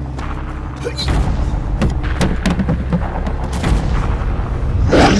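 A large creature stomps with heavy thuds.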